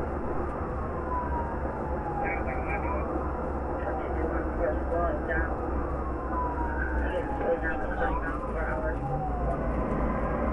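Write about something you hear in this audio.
A car engine hums and tyres roll steadily on a highway.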